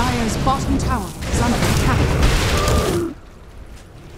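Loud game spell effects crash and whoosh during a fight.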